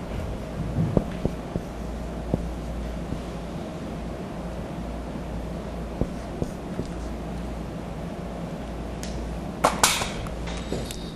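A marker taps and squeaks on a whiteboard.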